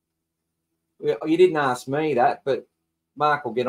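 A man talks with animation through a microphone, close up.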